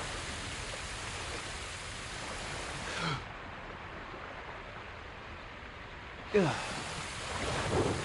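A swimmer's strokes slosh through water.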